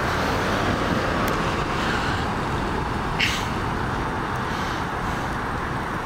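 A car drives slowly along the road.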